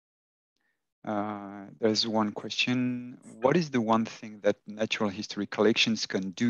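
A man talks with animation through a headset microphone over an online call.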